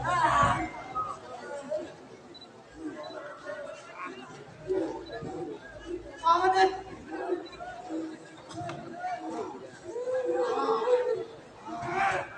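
Men speak and shout with strain, heard through loudspeakers.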